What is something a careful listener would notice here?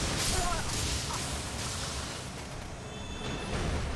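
Water splashes loudly as a magic blast bursts.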